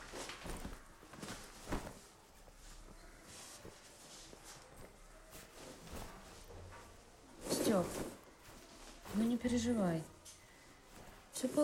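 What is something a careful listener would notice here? Clothes and a bag rustle.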